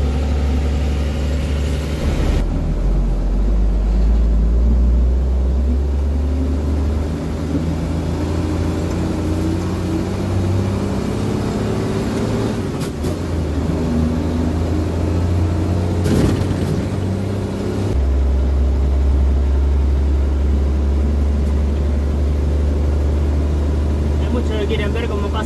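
A truck's diesel engine rumbles steadily and changes pitch as it shifts gears.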